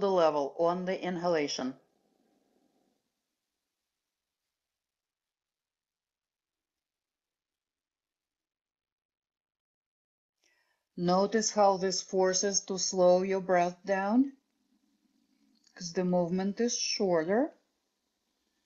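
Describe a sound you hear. A woman speaks calmly into a close microphone.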